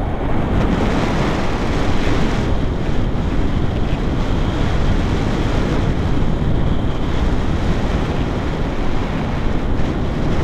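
Wind rushes and buffets loudly, close by.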